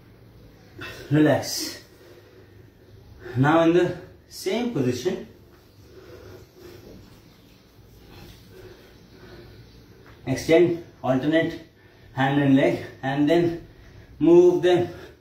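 A man speaks close by in short bursts, slightly out of breath.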